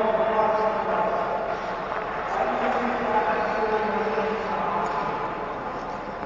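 Ice skates scrape and glide across the ice in a large echoing hall.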